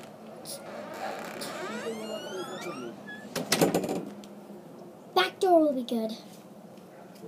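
A young girl talks and squeals with animation close by.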